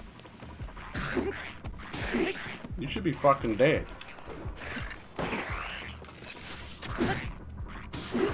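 Swords clash with metallic hits.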